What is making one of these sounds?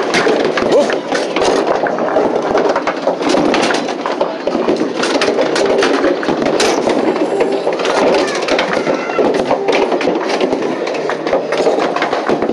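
Balls rumble as they roll up a wooden lane.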